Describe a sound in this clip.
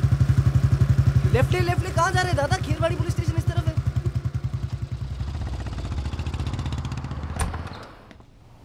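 A motorcycle engine throbs up close and fades away.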